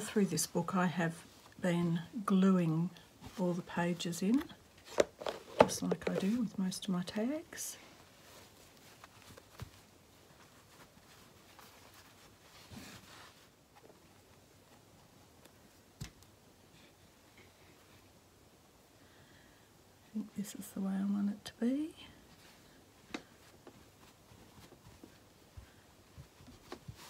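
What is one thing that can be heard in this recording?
Fabric pages rustle softly as hands handle them.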